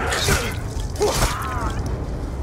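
A blade strikes flesh with a wet thud.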